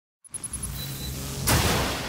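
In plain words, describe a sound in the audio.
Lightning cracks loudly.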